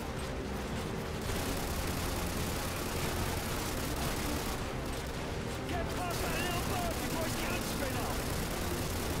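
Choppy water splashes and slaps against an inflatable boat's hull.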